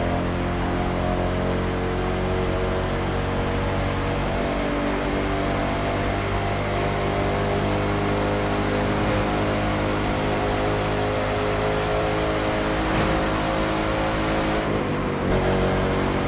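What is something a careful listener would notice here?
A sports car engine roars steadily at high speed, briefly dropping near the end.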